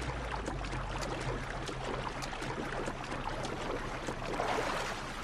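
Water splashes as a man swims fast.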